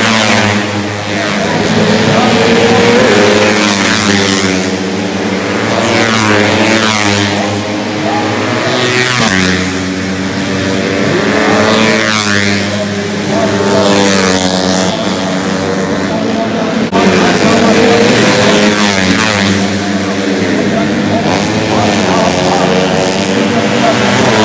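Motorcycle engines rev loudly and roar past, rising and falling in pitch.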